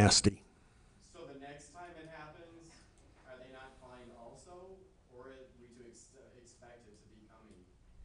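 People talk quietly in the room.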